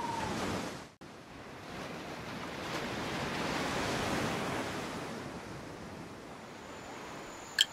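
Sea waves wash and roll softly.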